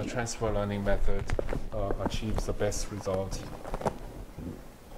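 A man speaks calmly into a microphone in a large room.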